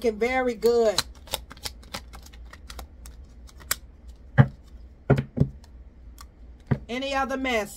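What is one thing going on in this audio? Playing cards flick and snap as they are shuffled by hand.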